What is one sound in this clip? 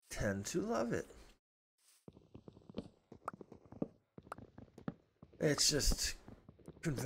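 A middle-aged man talks with animation close to a microphone.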